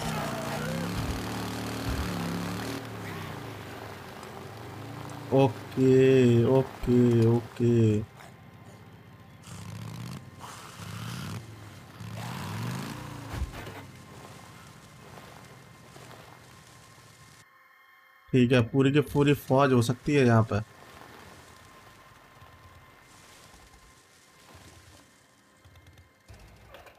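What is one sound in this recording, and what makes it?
A motorcycle engine rumbles and revs as the bike rides over rough ground.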